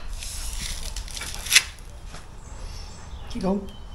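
Broken rubble scrapes and rattles on a shovel.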